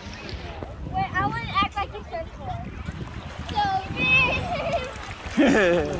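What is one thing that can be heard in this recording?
Water gently sloshes and laps all around.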